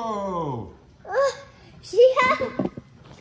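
A young girl laughs loudly.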